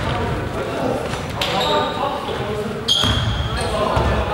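Sneakers squeak sharply on a court in a large echoing hall.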